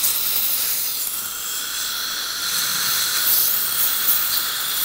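A dental drill whines.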